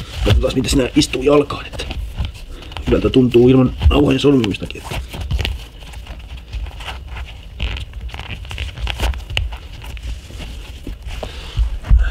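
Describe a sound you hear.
Shoelaces rustle and slap as they are pulled tight.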